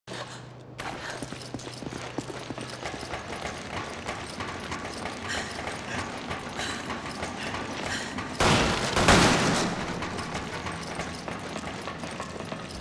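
Footsteps clang on a metal walkway.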